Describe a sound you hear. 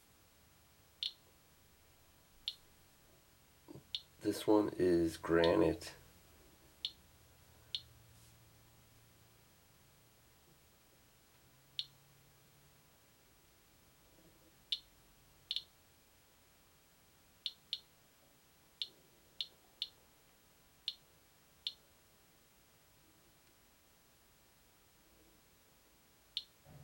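A radiation counter clicks sharply at uneven intervals.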